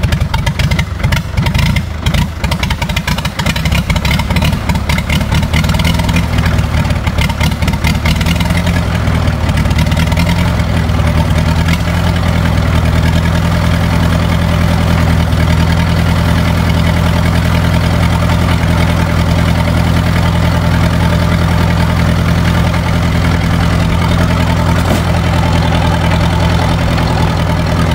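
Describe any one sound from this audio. An old tractor engine sputters and knocks unevenly, then settles into a steady loud chugging idle close by.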